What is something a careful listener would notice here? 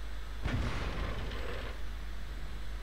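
A tank cannon fires with a loud boom that rumbles away.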